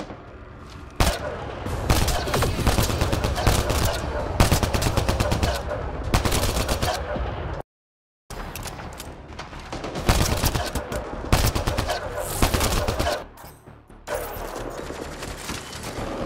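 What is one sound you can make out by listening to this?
A rifle fires with loud, sharp cracks.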